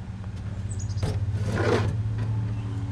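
A plastic bin thumps and rattles as a hand grabs it.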